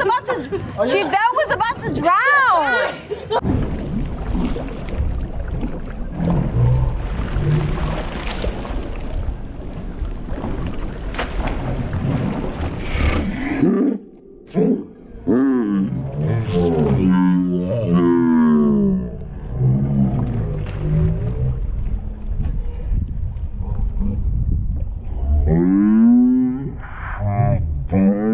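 Water splashes and churns in a pool.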